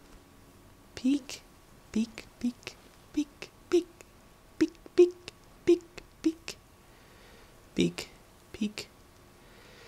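Footsteps thud on stone steps at a steady walking pace.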